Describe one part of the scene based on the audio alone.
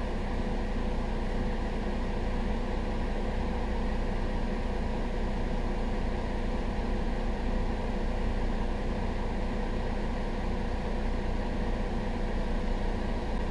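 A city bus's diesel engine idles.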